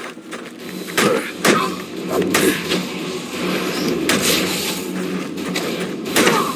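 Punches and kicks thud in a fist fight.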